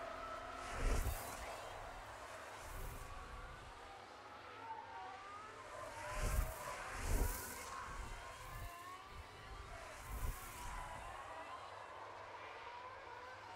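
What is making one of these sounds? A racing car engine whines at high revs and roars past in bursts.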